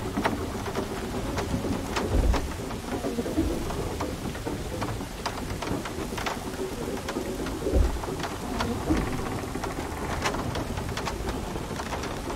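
Heavy footsteps thud and creak on wooden planks.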